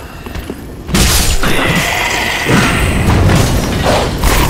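A sword swings and clashes in a fight.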